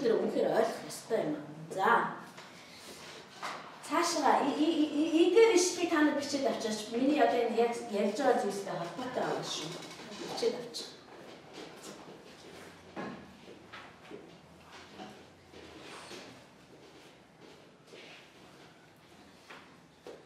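A middle-aged woman speaks calmly into a microphone in an echoing room.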